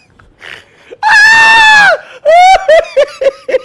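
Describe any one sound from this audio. A man laughs loudly with a high, squealing voice.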